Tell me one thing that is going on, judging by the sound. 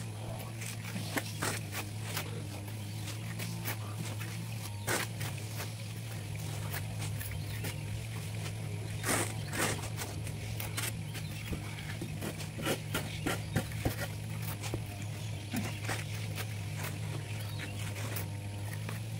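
Shovels scrape and dig into sand and gravel.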